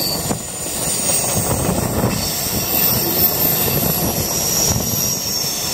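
A freight train rumbles past close by, its wheels clattering over the rail joints.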